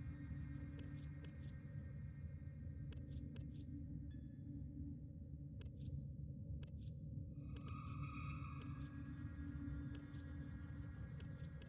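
Short interface clicks tick as menu selections change.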